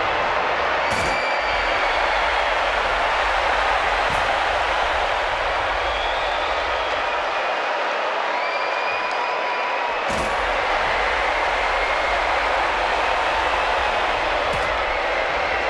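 Blows thud sharply now and then.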